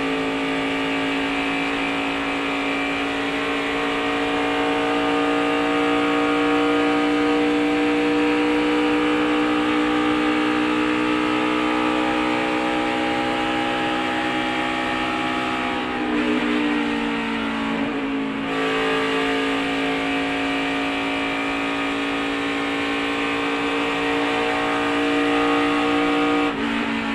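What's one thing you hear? A race car engine roars loudly at high revs from close by.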